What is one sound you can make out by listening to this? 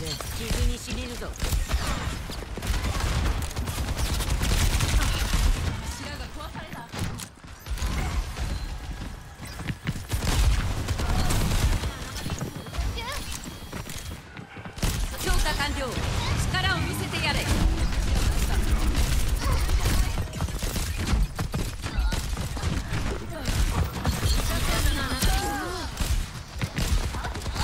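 Gunfire rattles in rapid bursts of shots.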